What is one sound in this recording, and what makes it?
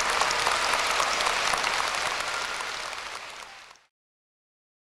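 A large crowd applauds loudly in a big echoing hall, then fades out.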